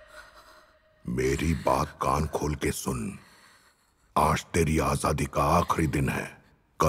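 A middle-aged man speaks angrily and close by.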